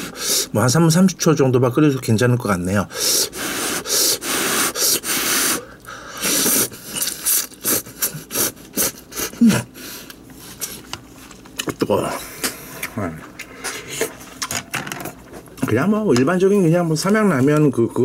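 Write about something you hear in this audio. A spoon scoops noodles out of broth with soft wet sounds.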